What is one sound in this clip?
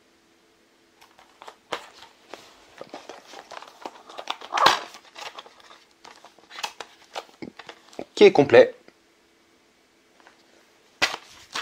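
A plastic game case clicks open and rattles in a man's hands.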